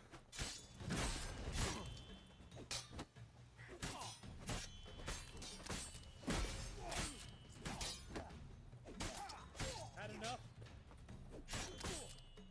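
Swords swing and whoosh sharply, again and again.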